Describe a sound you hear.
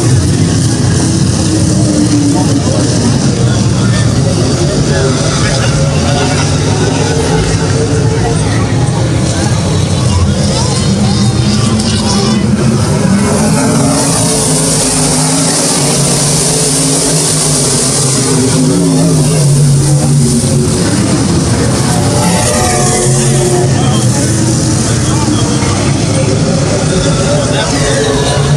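Race car engines roar loudly as cars speed around a dirt track.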